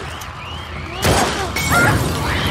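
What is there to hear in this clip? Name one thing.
A burning bottle bursts into flames.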